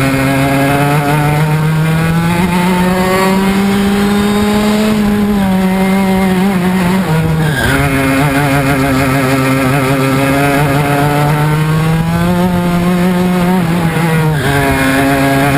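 A kart engine buzzes loudly up close, rising and falling in pitch as it speeds up and slows for corners.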